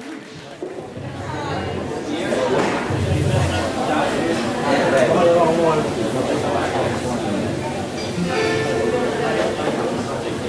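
A live band plays in an echoing room.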